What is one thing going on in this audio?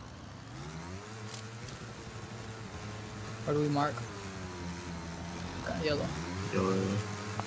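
A motorcycle engine hums steadily, revving up and down.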